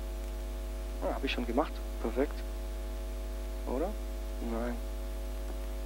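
A man speaks briefly and hesitantly.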